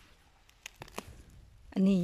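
Leaves rustle as a hand grabs a leafy plant.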